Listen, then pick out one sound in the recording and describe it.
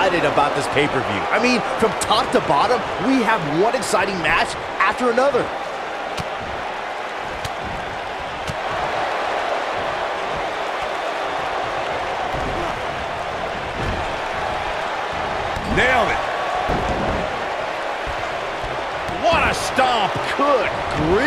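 A crowd cheers and murmurs steadily in a large arena.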